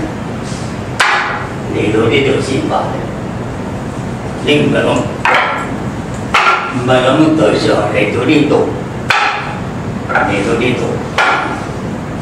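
Hands strike a wooden post with sharp knocks.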